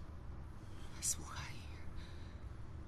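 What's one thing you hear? A man speaks in a low, strained voice, close by.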